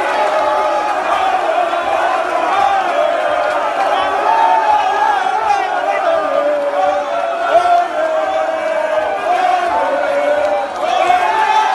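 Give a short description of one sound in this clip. A crowd of men cheers and shouts loudly close by.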